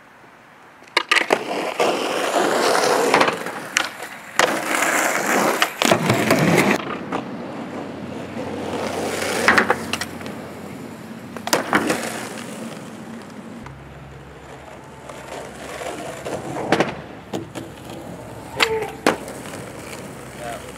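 Skateboard wheels roll loudly over concrete.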